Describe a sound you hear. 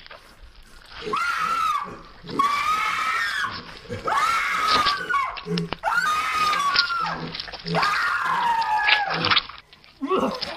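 A young woman shrieks with laughter, close by.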